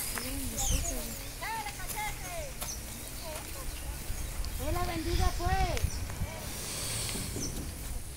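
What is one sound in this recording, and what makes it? A rake scrapes and rustles through cut grass.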